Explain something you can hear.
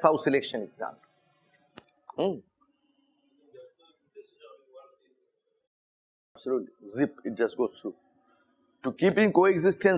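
A man lectures calmly through a microphone, pausing now and then.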